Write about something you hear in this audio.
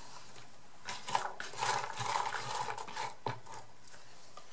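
Small paper pieces rattle and rustle in a box as a hand stirs them.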